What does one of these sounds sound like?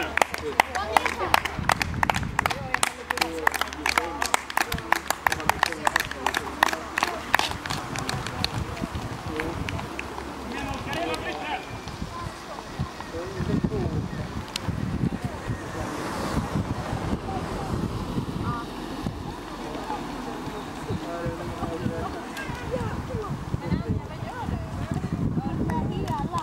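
A crowd of men and women cheers and chatters outdoors.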